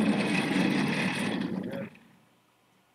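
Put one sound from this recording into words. A chair scrapes and rolls across the floor.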